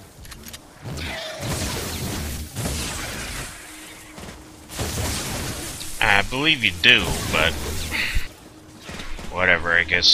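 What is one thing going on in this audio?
A sword swooshes and strikes in a video game.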